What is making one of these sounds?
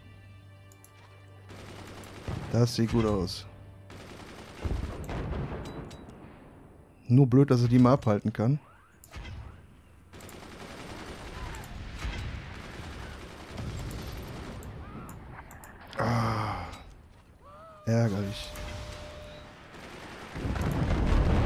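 Cannons fire with deep booming thuds.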